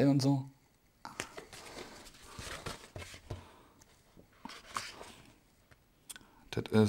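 Magazine pages rustle and turn.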